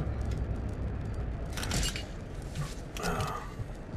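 Heavy metal doors clank as they are pushed open.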